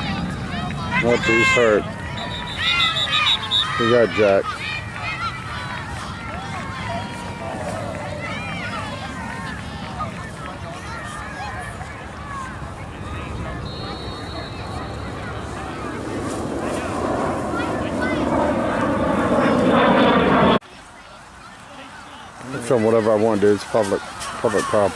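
Children shout and call out loudly nearby.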